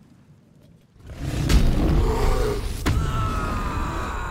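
A fiery blast bursts with a loud roar.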